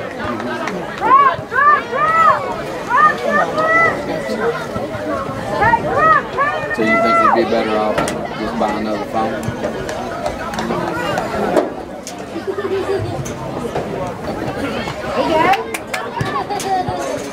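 A crowd of spectators shouts and cheers outdoors from a distance.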